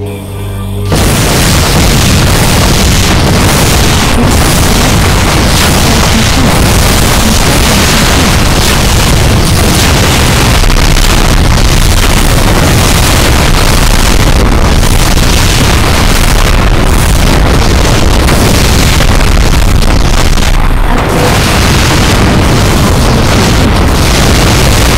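Explosions boom repeatedly.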